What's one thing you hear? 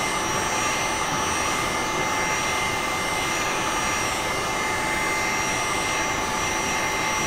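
A heat gun blows with a steady whooshing roar.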